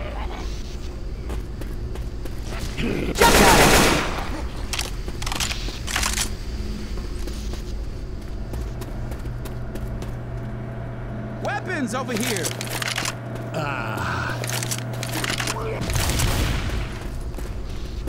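An assault rifle fires bursts of shots.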